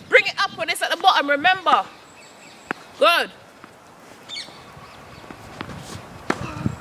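A tennis racket strikes a tennis ball.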